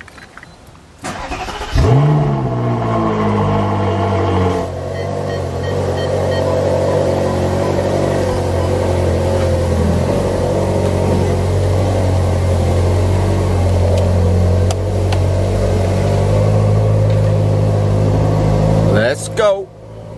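A sports car engine starts with a loud roar and then idles with a deep rumble.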